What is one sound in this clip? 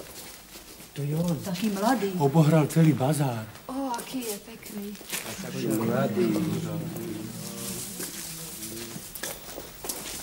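A crowd of men and women shouts and clamours loudly nearby.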